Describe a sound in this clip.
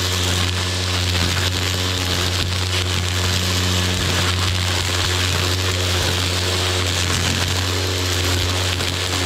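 A trimmer line whips and slashes through grass and weeds.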